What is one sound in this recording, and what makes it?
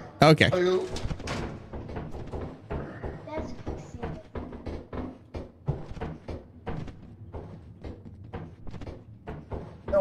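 Footsteps clang on metal grating and stairs.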